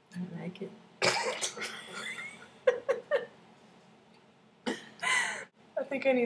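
A young woman laughs close to a webcam microphone.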